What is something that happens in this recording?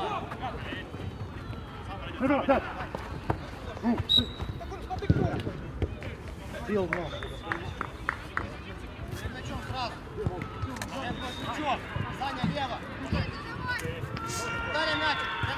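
Men shout and call out to each other outdoors during a football match.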